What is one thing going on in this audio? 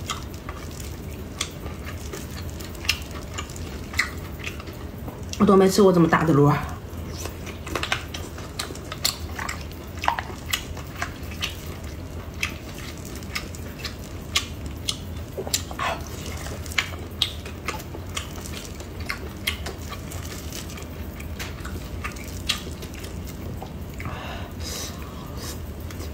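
A young woman sucks snails out of their shells, close to a microphone.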